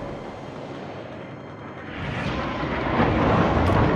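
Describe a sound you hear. Shells splash into the sea.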